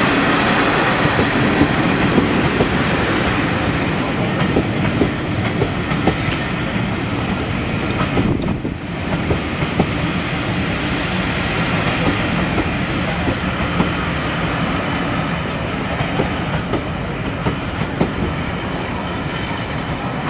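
Train carriages rumble past close by on the rails.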